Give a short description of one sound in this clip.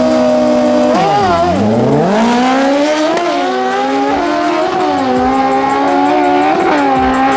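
Motorcycles roar away at full throttle, shifting up through the gears.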